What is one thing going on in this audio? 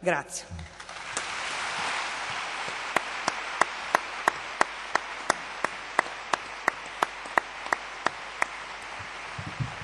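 An audience applauds in a large hall, with rhythmic clapping.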